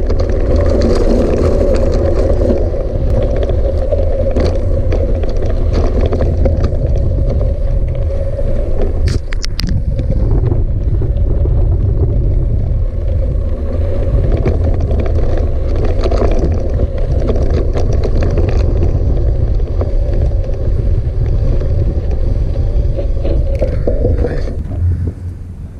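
Bicycle tyres crunch and rumble over loose gravel.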